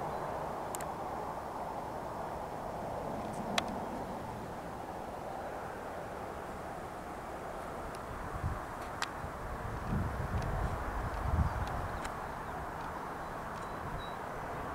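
A jet aircraft roars steadily overhead.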